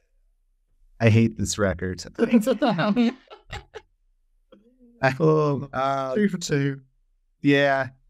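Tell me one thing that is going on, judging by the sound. A man laughs heartily over an online call.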